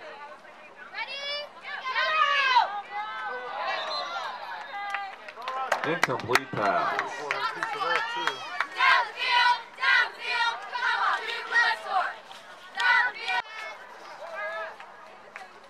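A crowd of spectators nearby cheers and shouts with excitement.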